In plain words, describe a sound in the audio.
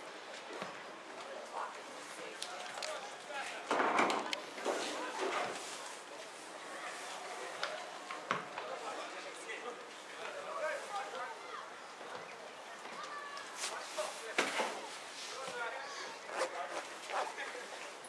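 Men shout and call out to each other across an open field, heard from a distance.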